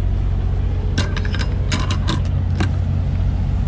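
A metal door latch clanks and rattles.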